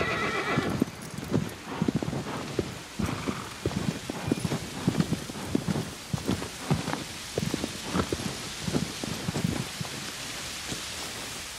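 A horse's hooves thud steadily on soft ground at a gallop.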